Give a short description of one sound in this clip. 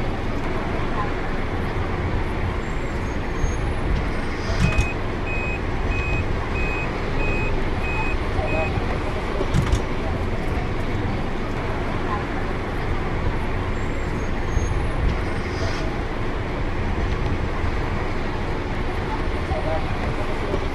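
A bus engine rumbles steadily as the bus drives.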